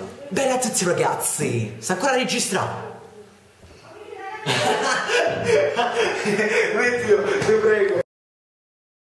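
A young man talks loudly and excitedly close by.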